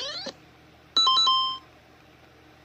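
A short electronic game chime sounds through a small speaker.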